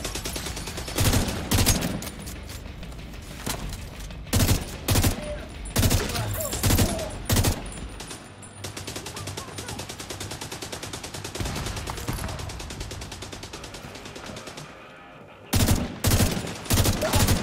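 Rifle shots ring out in loud bursts.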